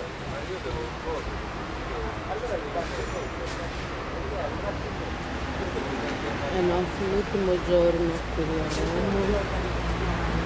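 A man talks with animation nearby, outdoors.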